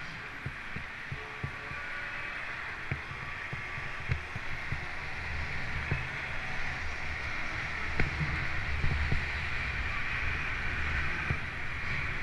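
Freeway traffic roars steadily below.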